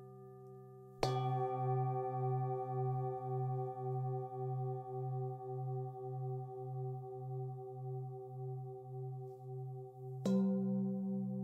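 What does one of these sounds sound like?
A singing bowl is rubbed around its rim, giving a steady, pulsing hum.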